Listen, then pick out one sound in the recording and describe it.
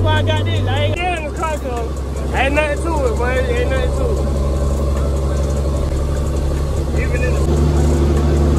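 A truck engine rumbles steadily as it drives.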